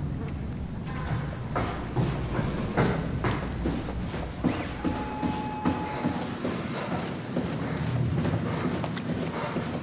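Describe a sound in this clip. Footsteps clank on a metal grating floor.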